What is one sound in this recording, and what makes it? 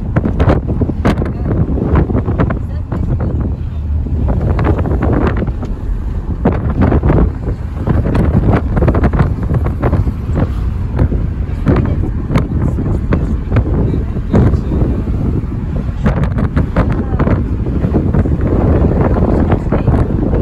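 Wind rushes and buffets loudly past an open car window.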